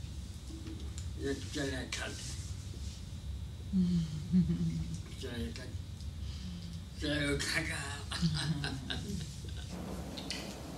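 An elderly man speaks and laughs softly close by.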